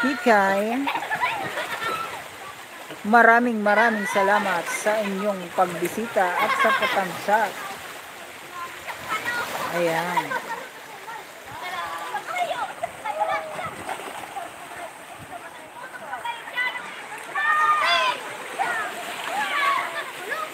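Young people shout and call out playfully from the water some distance away.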